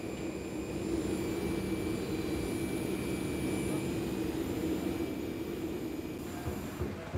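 A bus engine idles with a steady low hum.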